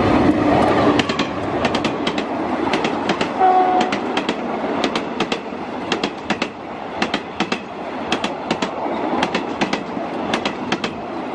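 Passenger train wheels clatter rhythmically over rail joints as coaches pass close by.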